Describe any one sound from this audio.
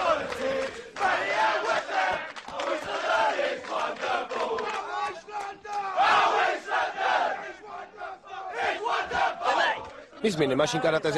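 A crowd of young men cheers and shouts loudly.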